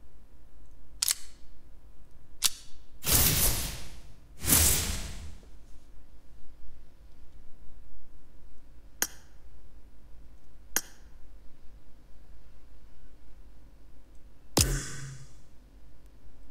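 Short interface clicks and soft whooshes sound as menus open and close.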